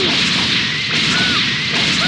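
Energy beams whoosh past.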